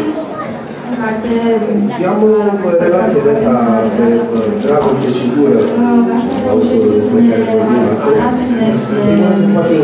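A woman speaks steadily into a microphone, heard through loudspeakers in a large room.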